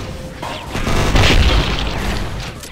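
An explosion bursts with a wet splatter.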